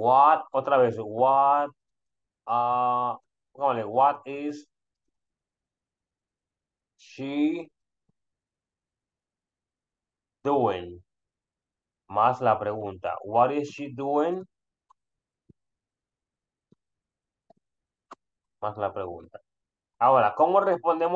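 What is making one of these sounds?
A man speaks calmly with pauses over an online call.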